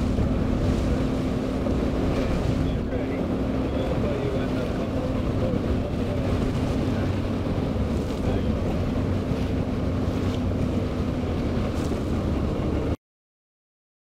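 Waves slosh against a wooden ship's hull.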